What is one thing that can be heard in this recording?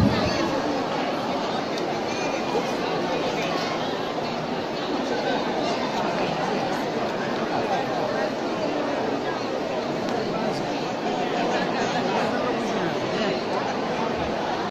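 A large crowd chatters loudly in a big hall.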